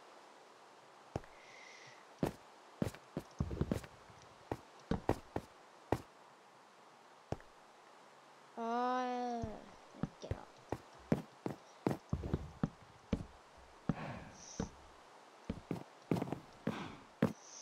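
Wooden blocks are placed with short, soft knocks, many times.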